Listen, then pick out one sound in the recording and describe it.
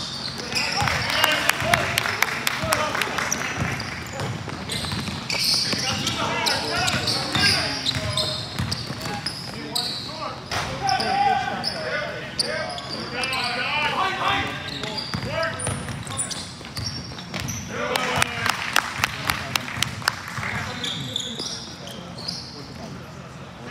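A basketball bounces on a hardwood floor, echoing in a large hall.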